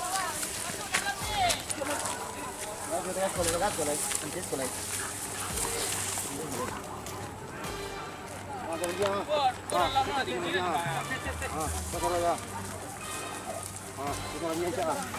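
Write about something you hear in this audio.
Feet rustle through tall grass and brush.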